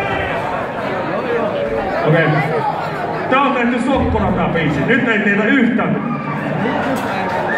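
A rock band plays loudly through a big sound system in a large hall.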